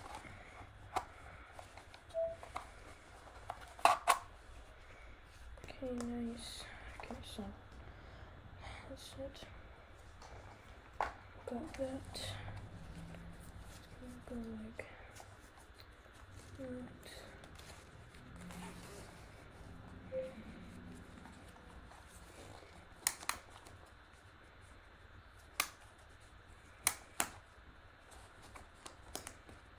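Plastic parts click and knock as they are handled up close.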